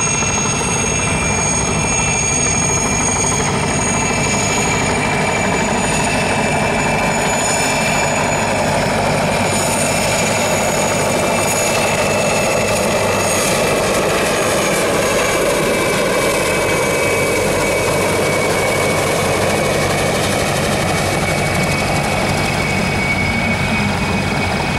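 A helicopter's rotor thuds and its engine whines steadily overhead.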